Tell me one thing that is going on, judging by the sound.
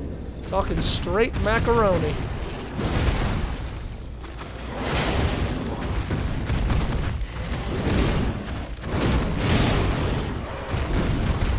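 A sword swishes and slashes repeatedly.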